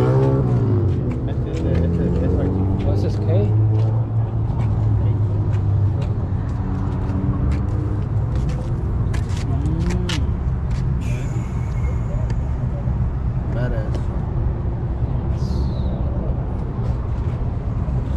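A car engine idles nearby with a low, steady rumble.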